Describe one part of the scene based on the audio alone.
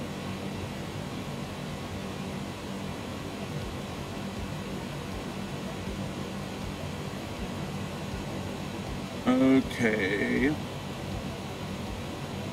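Jet engines hum steadily, heard from inside a cockpit.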